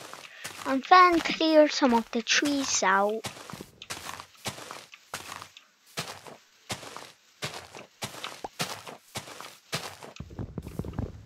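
Leaves crunch and rustle as they are broken with quick, repeated hits.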